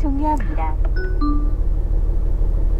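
An electronic chime beeps briefly from a car's speaker.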